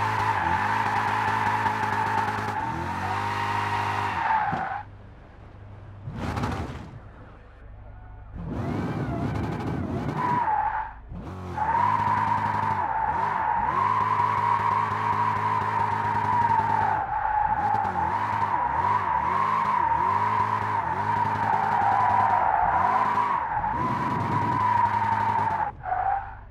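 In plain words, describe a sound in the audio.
A racing car engine roars at high revs, rising and falling as gears shift.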